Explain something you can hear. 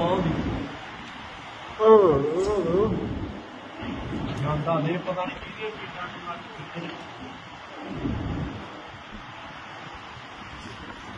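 Wind gusts and rumbles outdoors in a storm.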